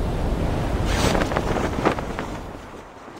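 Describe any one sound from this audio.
A parachute snaps open with a loud flutter.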